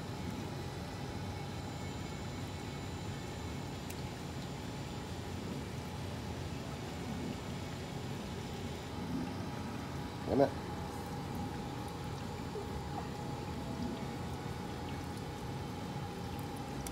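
An aquarium pump hums steadily underwater.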